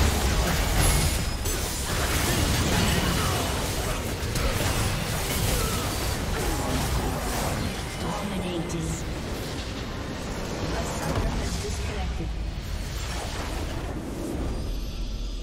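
Game battle effects clash and explode loudly.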